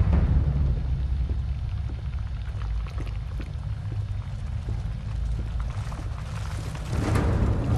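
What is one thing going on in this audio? Footsteps crunch over loose debris at a steady walking pace.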